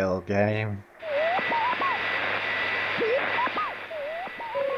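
A television hisses with static.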